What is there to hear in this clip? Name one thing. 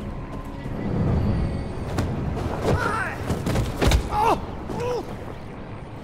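Heavy blows thud as a man is knocked down.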